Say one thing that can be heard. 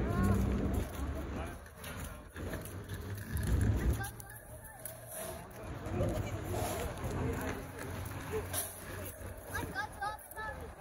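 A young girl chatters in a high voice.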